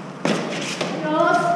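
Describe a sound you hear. A young woman calls out during play.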